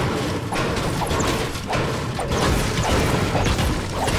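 A pickaxe swings and strikes with sharp whooshes.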